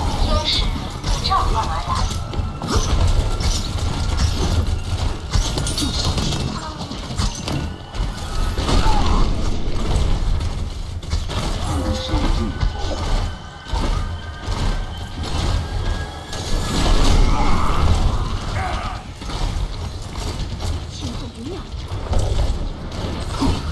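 Heavy gunfire and explosions from a video game crash repeatedly.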